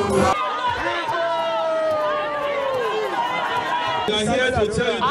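A crowd cheers and sings loudly outdoors.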